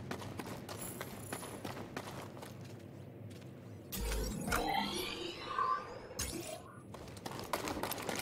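Footsteps run quickly over hard, crunchy ground.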